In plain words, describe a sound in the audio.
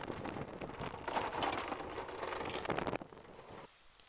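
Tyres rumble and hiss over pavement.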